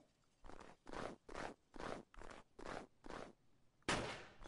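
A hand cannon fires a series of shots.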